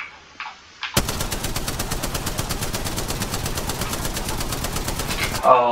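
A rapid-fire gun fires a long, fast burst of shots.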